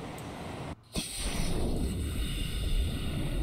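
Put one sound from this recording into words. A deep underwater rumble drones.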